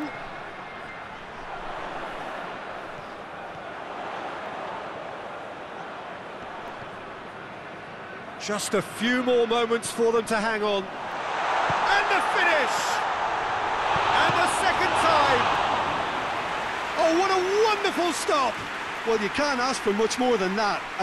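A large stadium crowd murmurs, then roars loudly in cheers.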